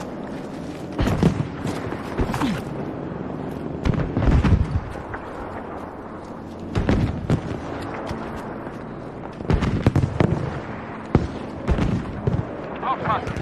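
Gunshots and explosions crack and boom in bursts.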